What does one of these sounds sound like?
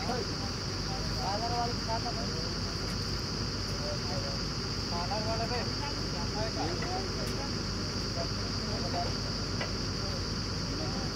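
A diesel engine drones steadily and loudly nearby.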